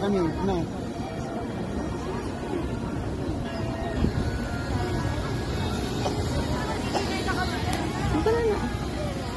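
Children shout and chatter outdoors in the background.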